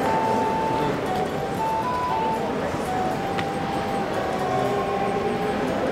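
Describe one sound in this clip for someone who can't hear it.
Footsteps tap on a stone floor in a large echoing hall.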